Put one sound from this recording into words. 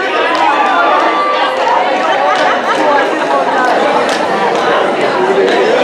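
A crowd in a large hall cheers and chatters loudly.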